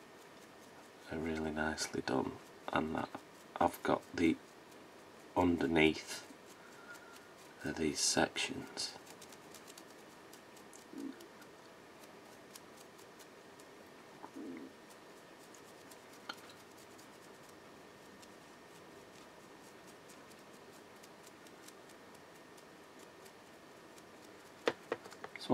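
A stiff brush scratches lightly against a small plastic piece.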